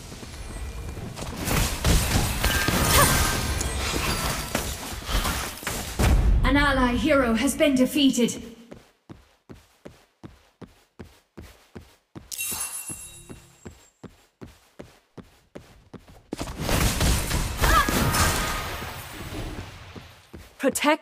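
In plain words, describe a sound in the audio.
Game spell effects whoosh and blast in bursts.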